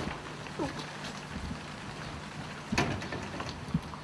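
A door bangs shut.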